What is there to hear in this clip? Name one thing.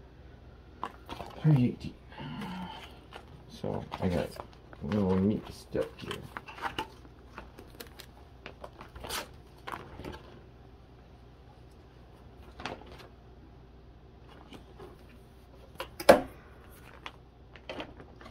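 Plastic card sleeves crinkle and rustle close by.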